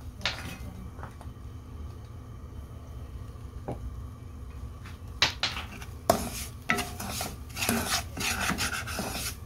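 A wooden spatula scrapes and stirs grainy food in a pan.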